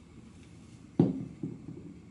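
A ceramic piece knocks against a table.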